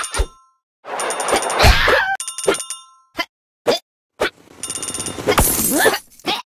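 Coins chime in quick bright jingles as they are collected.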